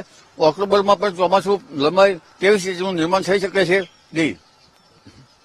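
An elderly man speaks calmly into a microphone close by.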